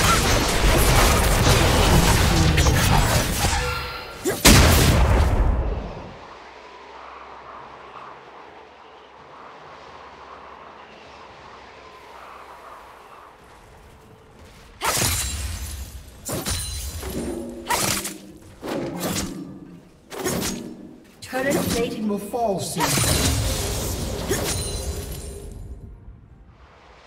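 Game sound effects of spells and hits clash and burst during a fight.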